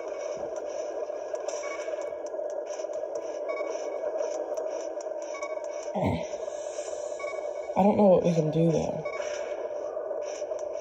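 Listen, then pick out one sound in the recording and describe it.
Short chiming game sound effects ring out now and then.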